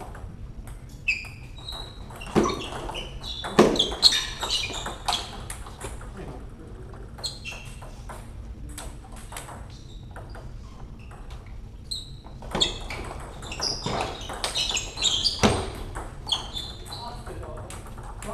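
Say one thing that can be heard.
Shoes squeak on a hard floor.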